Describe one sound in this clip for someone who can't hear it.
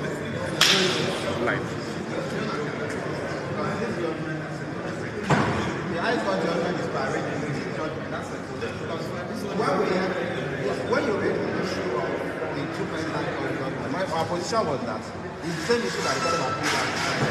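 Several men chatter in the background in an echoing space.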